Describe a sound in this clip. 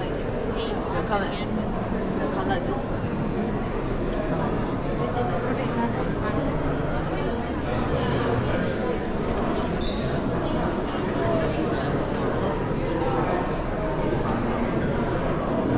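A crowd of visitors murmurs and chats in a large echoing hall.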